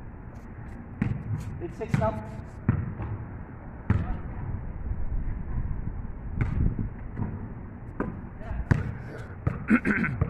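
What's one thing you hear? A basketball bounces on hard pavement.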